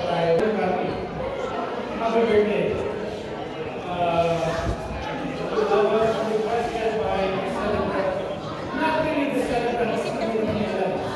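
A man speaks steadily into a microphone over a loudspeaker in a large echoing hall.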